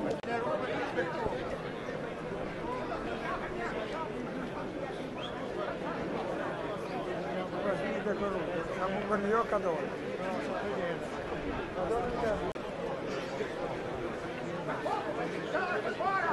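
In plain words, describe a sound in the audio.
Footsteps shuffle on pavement as a crowd marches.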